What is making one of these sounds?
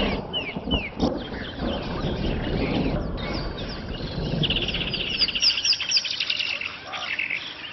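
Two dinosaurs growl as they fight.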